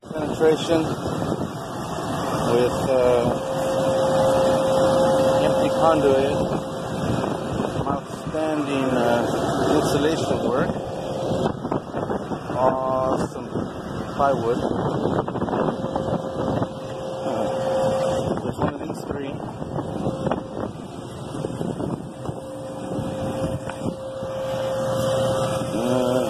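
An outdoor machine hums steadily.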